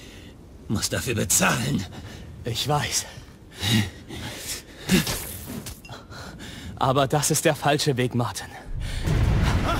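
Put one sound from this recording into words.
A man in a mask speaks calmly, close by.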